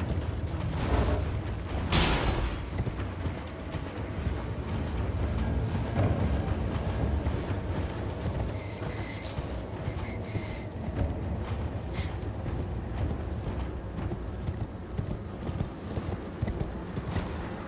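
Horse hooves thud steadily on the ground as a rider gallops.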